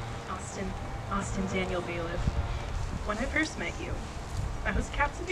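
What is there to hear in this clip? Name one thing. A young woman speaks into a microphone, heard through a loudspeaker.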